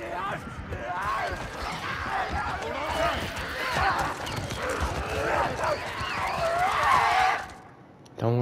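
Monsters shriek and snarl wildly.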